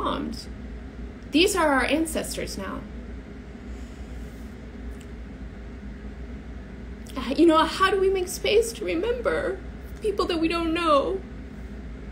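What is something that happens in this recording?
A young woman speaks calmly and expressively, close by, with pauses.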